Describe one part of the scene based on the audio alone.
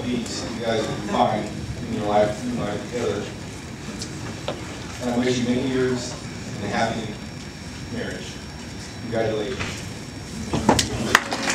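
A man gives a speech through a microphone, heard over loudspeakers in a large room.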